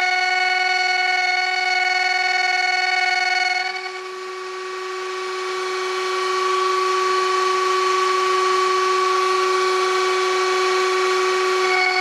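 A router whines steadily at high speed.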